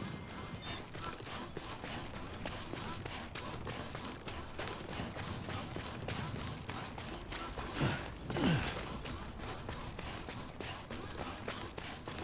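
Heavy boots step steadily on rock.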